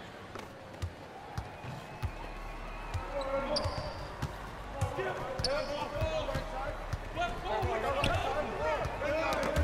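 A basketball bounces on a hard court in a steady dribble.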